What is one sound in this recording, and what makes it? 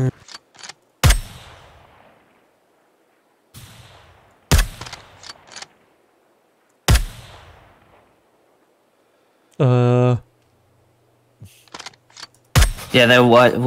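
A rifle fires single loud shots that echo and fade outdoors.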